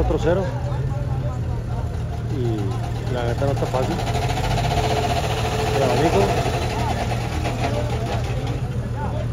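A rock crawler buggy's engine rumbles under load as it climbs a steep rock face outdoors.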